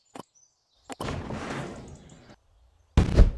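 A loud whoosh sweeps past.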